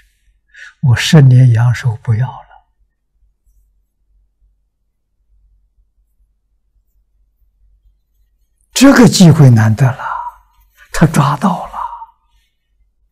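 An elderly man speaks with animation into a close microphone, with long pauses.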